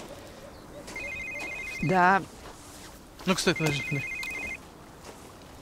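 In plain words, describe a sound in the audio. A phone beeps in short bursts.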